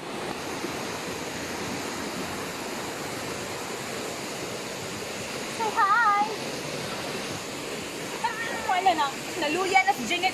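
Water rushes steadily over rocks.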